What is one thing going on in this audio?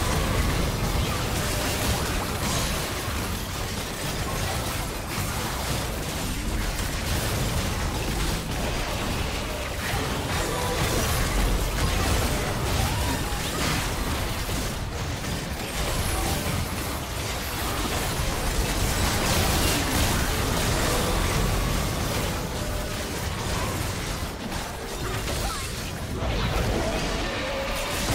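Game spell effects crackle, whoosh and blast in a busy fight.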